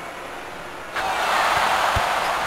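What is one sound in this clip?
An arena crowd cheers loudly.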